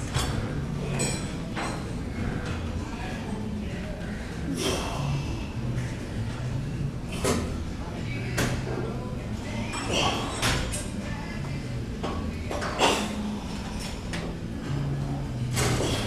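A metal exercise frame clanks and knocks.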